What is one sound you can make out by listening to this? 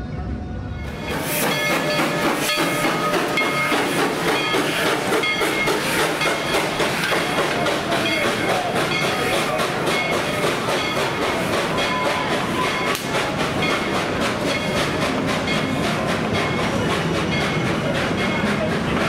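A steam locomotive chugs past up close.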